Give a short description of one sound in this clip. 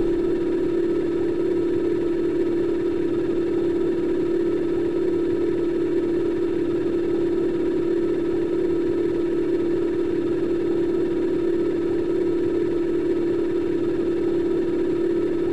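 A motorbike engine hums steadily as the bike rides over water.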